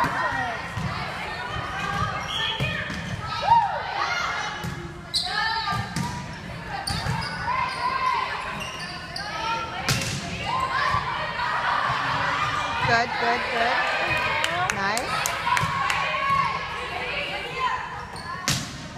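Young women call out to each other across the court.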